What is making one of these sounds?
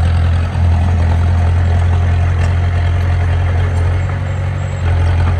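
Bulldozer tracks clank and squeal as the machine pushes soil.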